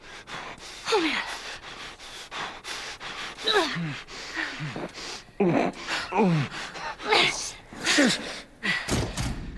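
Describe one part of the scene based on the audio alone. A young girl speaks anxiously.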